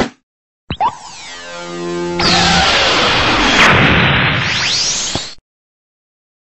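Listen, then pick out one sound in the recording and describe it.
A roaring energy blast surges and swells.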